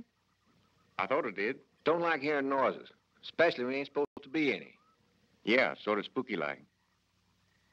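An elderly man answers gruffly up close.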